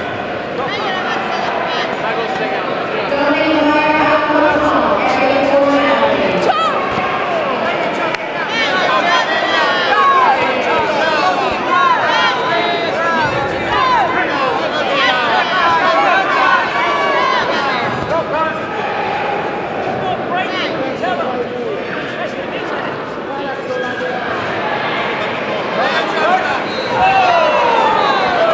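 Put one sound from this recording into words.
A crowd shouts and cheers throughout a large echoing hall.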